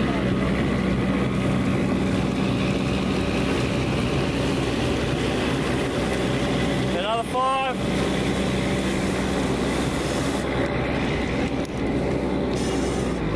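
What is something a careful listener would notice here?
A fire hose sprays water in a loud steady hiss.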